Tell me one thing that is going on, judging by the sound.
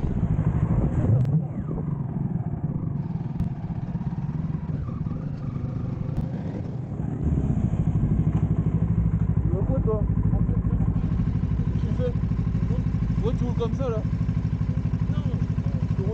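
A motorcycle engine rumbles nearby, then idles with a steady throb.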